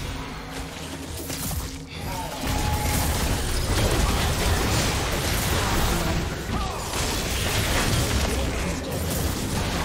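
Spell blasts and hits crackle and boom in a fast game fight.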